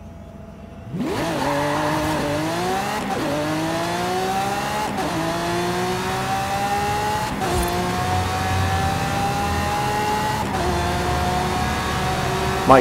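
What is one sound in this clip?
A sports car engine roars and revs up through the gears, rising in pitch with each shift.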